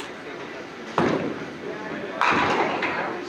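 A bowling ball lands on the lane with a heavy thud and rolls away.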